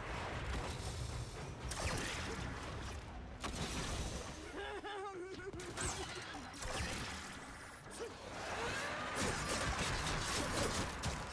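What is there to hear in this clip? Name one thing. A blade slashes and strikes with sharp metallic hits.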